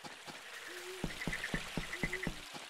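Footsteps thud on hollow wooden planks.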